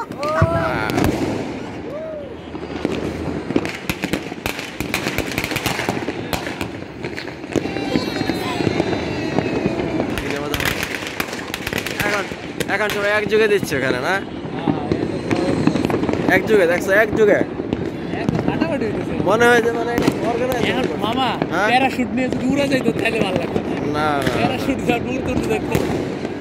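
Fireworks burst and crackle in the distance.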